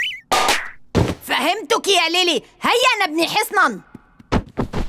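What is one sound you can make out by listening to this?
A young girl speaks with animation.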